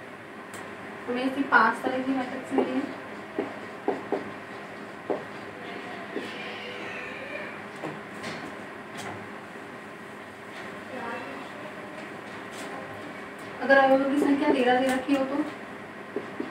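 A young woman speaks in short bursts nearby.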